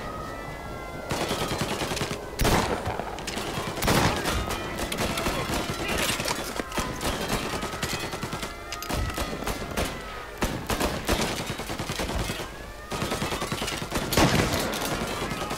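A shotgun fires in loud, sharp blasts.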